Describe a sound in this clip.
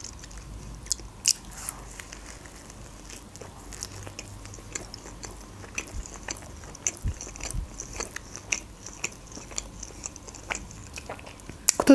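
A young woman chews food with soft, wet smacking sounds.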